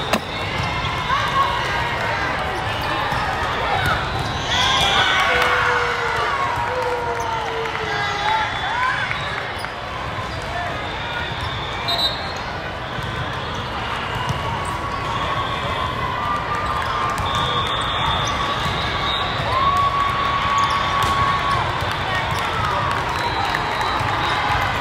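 A crowd of players and spectators murmurs and calls out.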